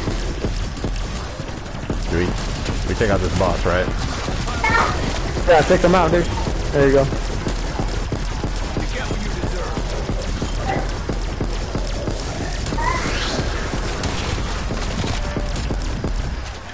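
Gunfire rattles rapidly and steadily.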